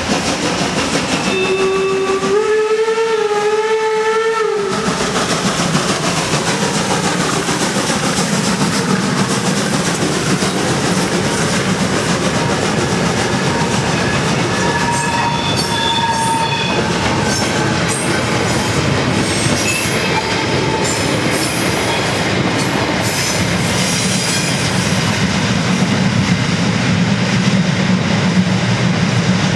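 A steam locomotive chuffs hard as it pulls away.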